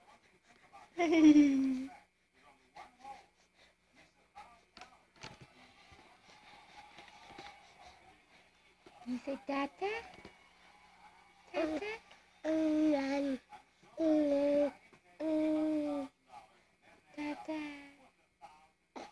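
A baby squeals and babbles loudly, close by.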